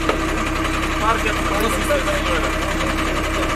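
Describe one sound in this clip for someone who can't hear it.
Men talk nearby.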